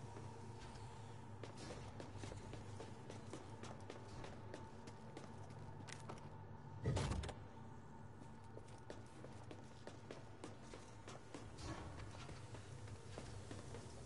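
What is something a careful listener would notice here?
Footsteps run across a metal floor.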